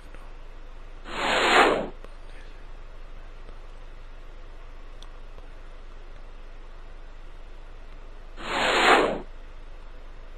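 A short whooshing sound swells and fades as a star flies away.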